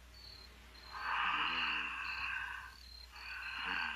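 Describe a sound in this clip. A woman speaks softly close by.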